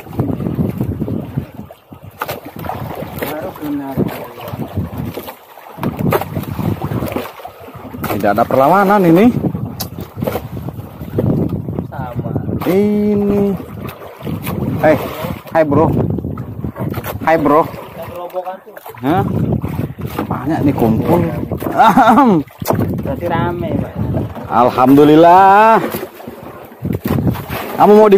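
Waves slosh against a small boat.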